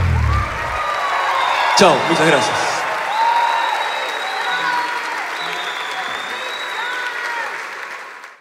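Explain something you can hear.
Individual people in a crowd whistle shrilly.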